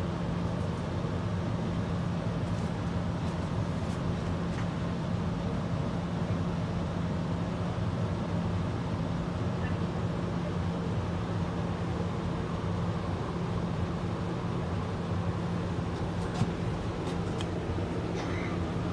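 A bus engine hums steadily from inside the bus.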